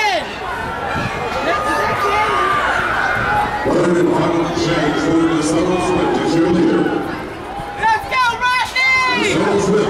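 A crowd of spectators outdoors cheers and shouts loudly.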